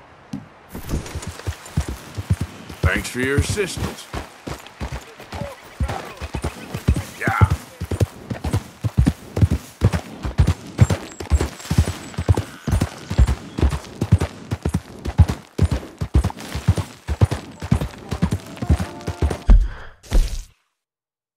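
Horse hooves gallop in a quick, steady rhythm over the ground.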